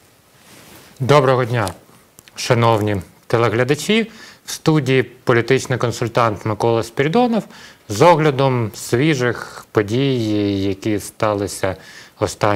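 A man speaks calmly and steadily, close to a microphone.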